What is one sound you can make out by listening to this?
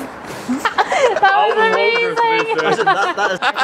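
A man laughs heartily up close.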